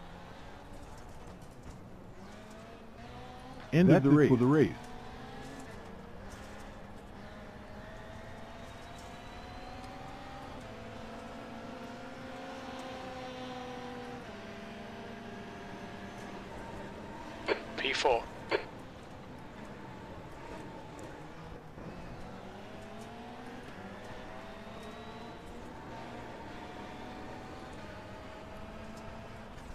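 Racing car engines drone and whine as they rise and fall in pitch.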